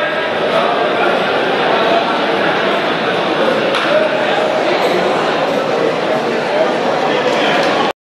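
A crowd of young men chatters and cheers in a large echoing hall.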